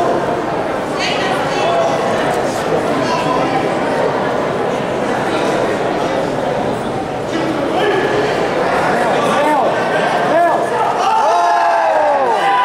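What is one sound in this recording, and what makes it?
A crowd of people chatters and calls out in a large echoing hall.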